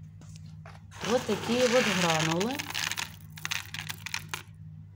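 Dry pellets rustle and rattle as a hand scoops them from a box.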